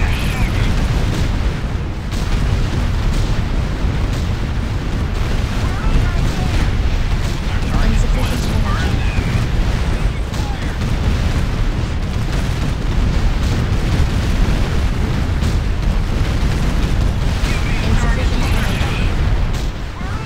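Explosions boom and rumble over and over.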